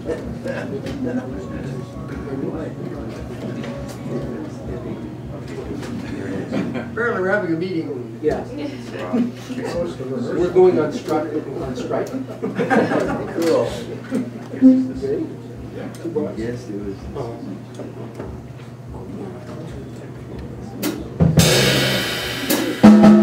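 An upright bass plucks a walking line.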